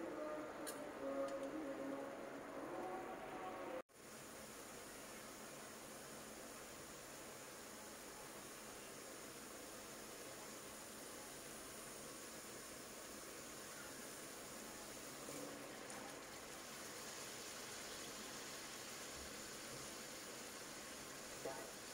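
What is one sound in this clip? Sauce sizzles and bubbles steadily in a hot pan.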